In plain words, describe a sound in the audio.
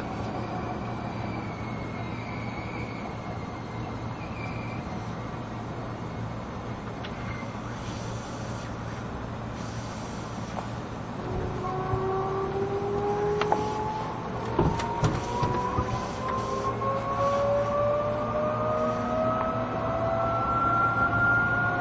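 An electric train hums steadily as it stands idle.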